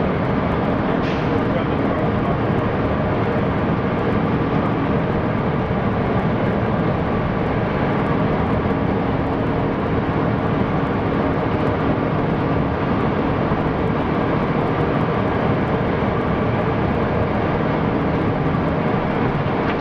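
A truck's diesel engine drones loudly and steadily from inside the cab.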